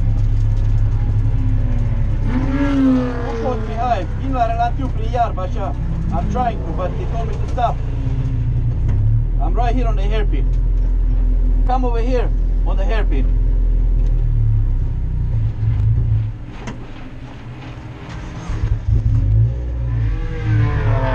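A race car engine drones loudly from inside the cabin, easing off briefly before roaring again.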